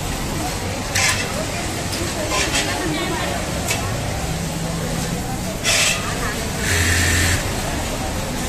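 Sewing machines whir in short bursts.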